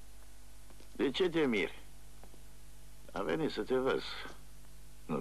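A man speaks loudly and sharply nearby.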